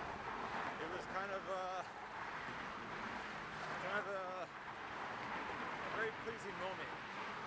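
A man speaks loudly and close by, in short bursts.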